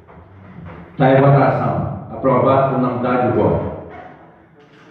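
A man speaks over a loudspeaker in an echoing hall.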